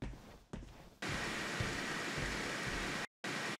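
Loud static hisses steadily.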